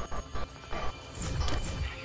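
A pickaxe swings and strikes metal with a sharp clang.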